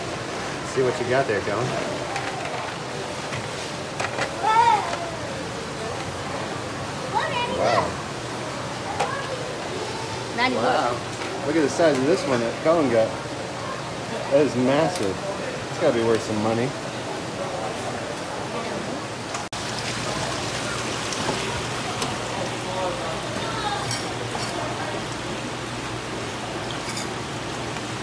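Water runs through a wooden sluice.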